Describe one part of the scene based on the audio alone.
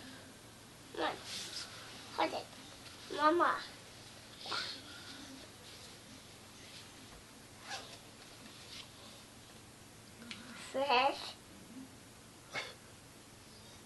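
A young woman talks softly and playfully close by.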